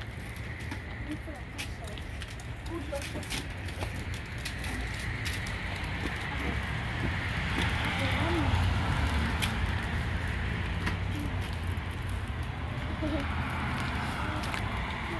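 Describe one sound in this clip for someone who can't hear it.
Bicycle tyres roll over rough pavement.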